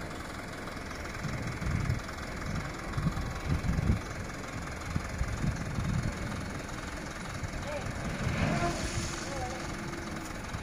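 Gravel slides and rumbles out of a tipping dump truck.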